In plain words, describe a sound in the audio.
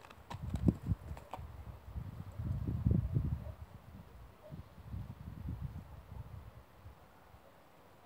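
A dog's paws thud and scuffle on grass.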